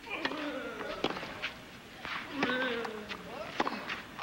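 A racket strikes a tennis ball with sharp pops.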